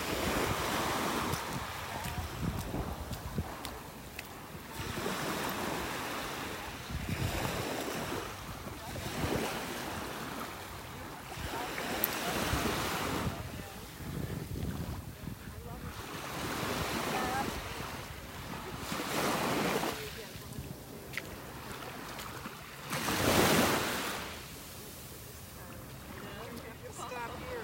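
Small waves wash gently onto the shore in rhythmic swells.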